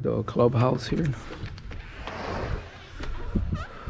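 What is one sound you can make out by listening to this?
A door handle clicks and a glass door swings open.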